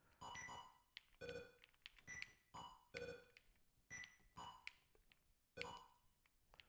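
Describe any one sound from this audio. Electronic game beeps and bleeps ring out in quick bursts.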